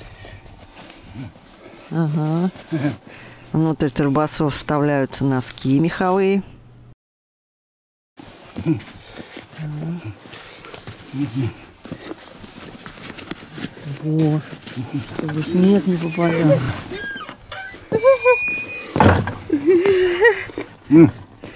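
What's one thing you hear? Cloth rustles as hands pull a fabric cover over an animal's head.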